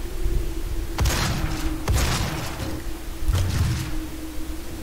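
A gun fires several loud shots in a row.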